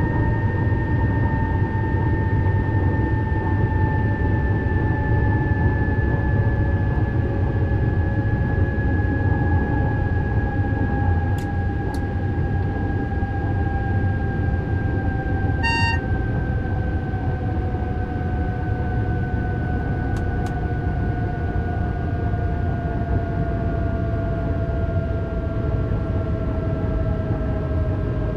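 A train rumbles along the tracks in a tunnel.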